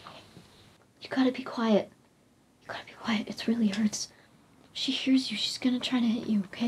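A young girl talks playfully in a high voice.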